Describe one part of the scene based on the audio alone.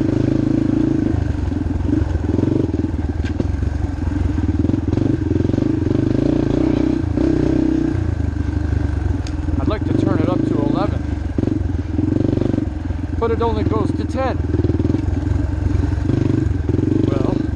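A dirt bike engine roars and revs up close.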